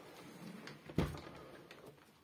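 A window handle clicks as it turns.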